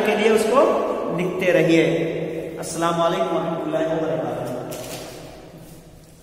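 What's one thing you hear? A man speaks close to the microphone, explaining calmly.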